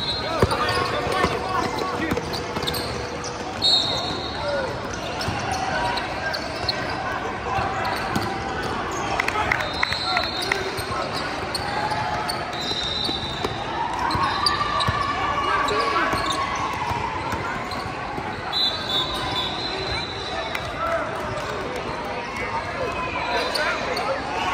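Young players shout and call out across the court.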